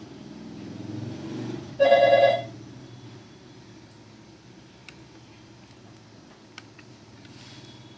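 A plastic casing rubs and clicks in a hand.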